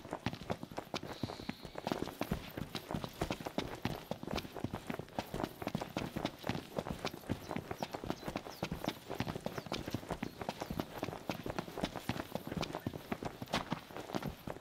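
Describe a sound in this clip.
Quick footsteps run over dry grass and dirt.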